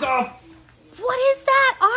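A young child speaks in a high voice nearby.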